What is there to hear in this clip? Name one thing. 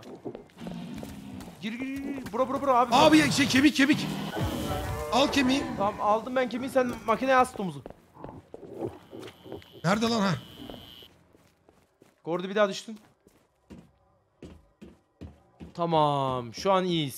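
Young men talk and exclaim with animation over headset microphones.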